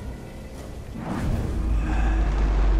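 A ghostly whoosh swells up.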